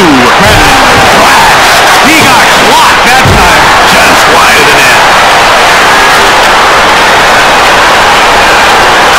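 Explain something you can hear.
A large crowd roars steadily in an echoing arena.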